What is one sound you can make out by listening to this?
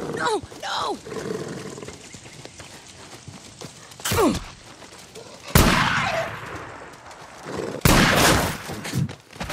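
Footsteps crunch quickly over dry grass and gravel.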